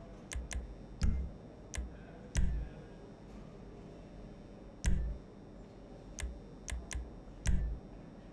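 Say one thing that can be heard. A deeper menu thump sounds several times.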